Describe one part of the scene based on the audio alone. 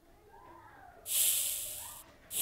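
Water gushes and splashes.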